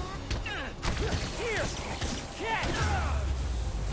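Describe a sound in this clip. Punches land with heavy thuds in a fight.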